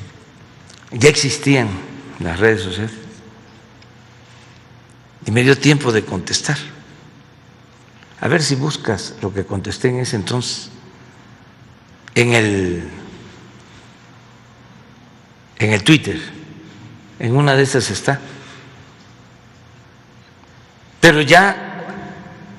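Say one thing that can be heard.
An elderly man speaks slowly and calmly into a microphone, in short phrases with long pauses.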